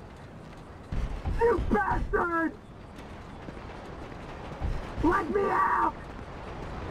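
A man shouts angrily.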